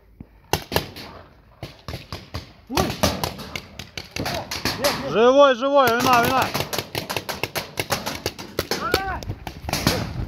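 Paintball markers fire rapid popping shots outdoors.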